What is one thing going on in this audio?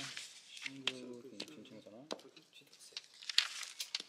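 Sheets of paper rustle under a hand.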